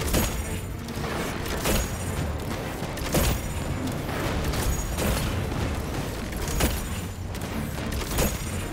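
Heavy weapon blasts boom at a steady pace.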